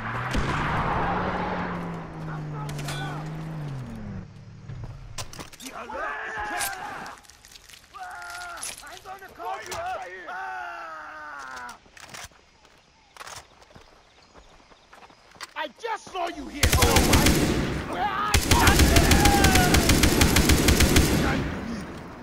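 An assault rifle fires in bursts.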